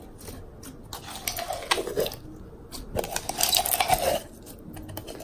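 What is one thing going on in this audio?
Slime squelches and crackles as hands squeeze it out of a jar.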